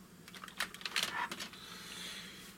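Plastic toy parts click and clatter as a hand sets a figure down.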